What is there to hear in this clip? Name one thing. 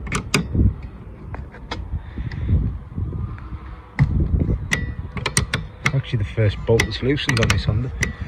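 A spanner clicks as it turns a nut.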